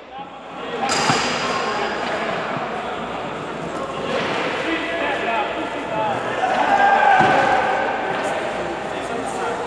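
A crowd of men chatters loudly in a large echoing hall.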